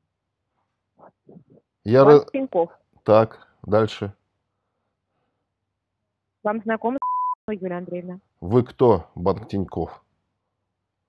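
A middle-aged man talks calmly over an online call, in short bursts with pauses.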